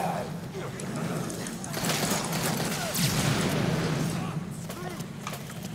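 Blows thud and crunch in a brawl.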